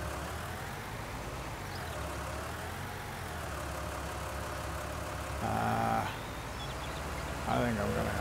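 A tractor engine rumbles steadily at idle.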